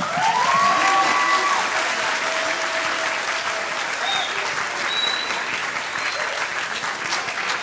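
A group of young women cheer and shout loudly together.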